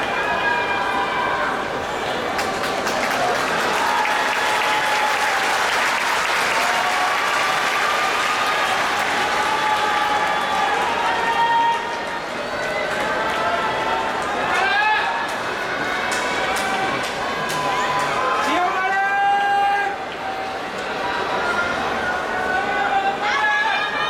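An older man calls out in a long, chanting voice.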